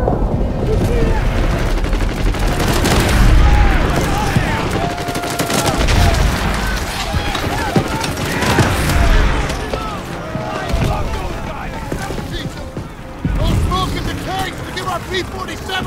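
A young man shouts urgently.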